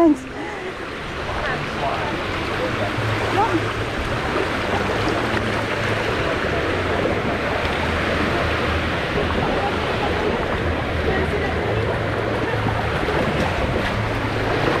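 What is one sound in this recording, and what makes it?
A steady rushing roar fills the air.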